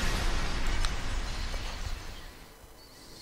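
Glass shatters into pieces.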